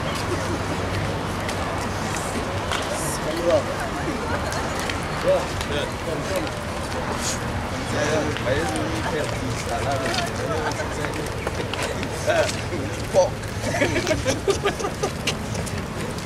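Footsteps shuffle on pavement as a group walks slowly.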